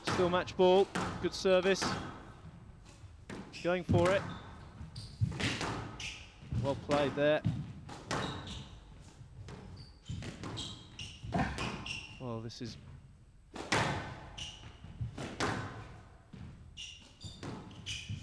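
Squash balls smack sharply against rackets and walls in a rapid rally.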